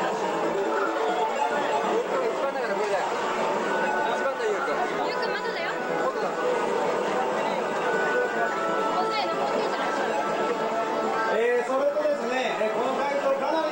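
Chiptune video game music plays through a television speaker.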